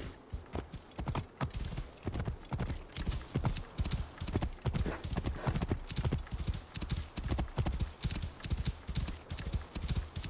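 Horse hooves gallop rhythmically over sand.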